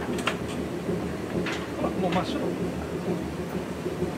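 A washing machine door clicks open.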